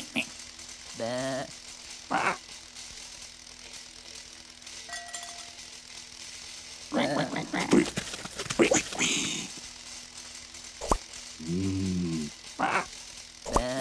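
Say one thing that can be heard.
Cartoon animals moo and grunt in short calls.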